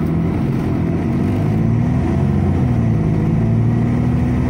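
A bus engine rises in pitch as the bus speeds up.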